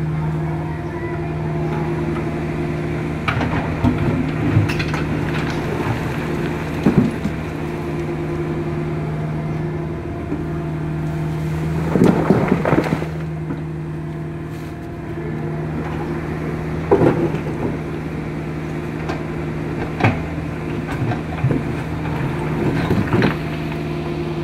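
A diesel excavator engine hums steadily close by.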